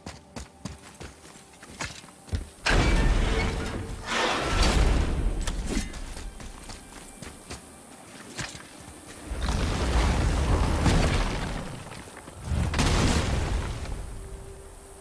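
Footsteps crunch on stone and grass.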